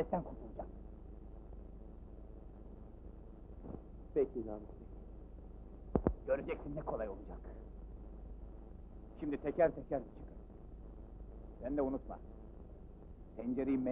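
A man speaks tensely in short bursts, close by, with a muffled, old-fashioned sound.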